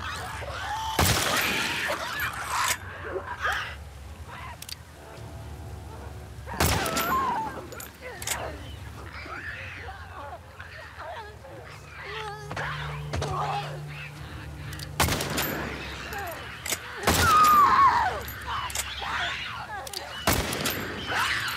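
A pistol fires loud, sharp shots.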